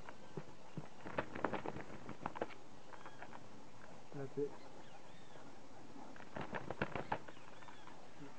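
A bird's wings flap in short, sudden flurries.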